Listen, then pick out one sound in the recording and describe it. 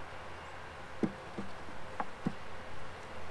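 A wooden frame knocks softly against a hive box.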